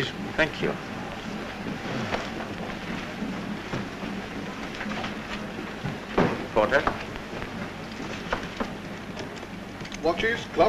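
A crowd murmurs and chatters in a busy room.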